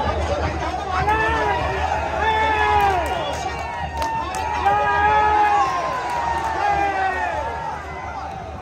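A large crowd cheers and murmurs in an open stadium.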